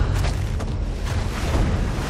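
Waves crash against wooden pilings.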